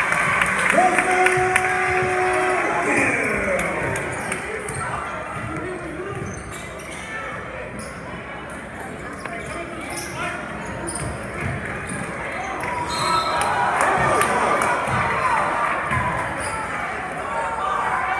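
A crowd cheers and chatters in a large echoing gym.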